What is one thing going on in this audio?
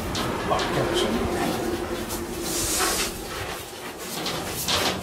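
A padded jacket rustles as a person moves close by.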